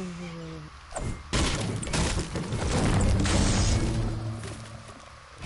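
A pickaxe knocks hard against a wall.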